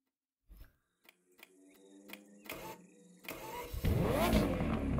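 A sports car engine hums and then roars as it revs up.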